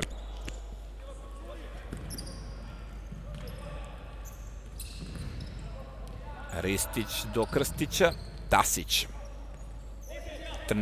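A ball thuds as players pass it along the floor.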